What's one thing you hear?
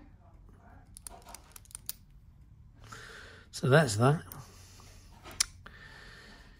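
Small metal parts click and tap together as they are handled.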